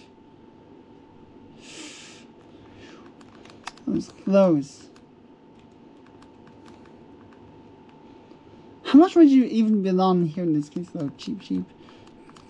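Buttons click softly on a handheld game console.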